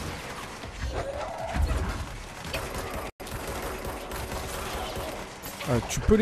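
Debris and broken glass clatter and scatter.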